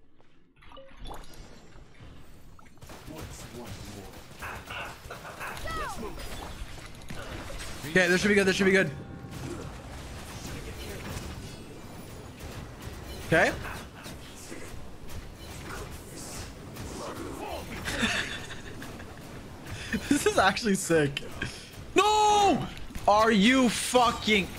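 Game combat effects whoosh and crash.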